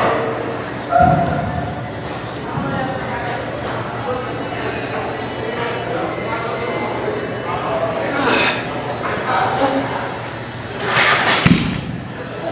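A loaded barbell clanks against a metal rack.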